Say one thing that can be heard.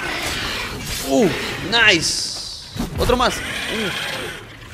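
A large creature screeches and roars.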